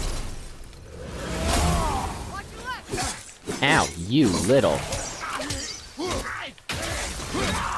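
Heavy blows strike and slash in quick succession.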